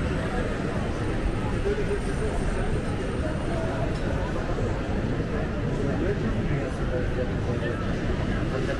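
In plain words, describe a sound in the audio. Men and women chatter nearby in a busy street outdoors.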